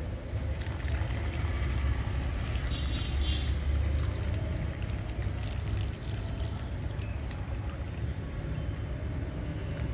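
Water pours from a jug and splashes into wet soil.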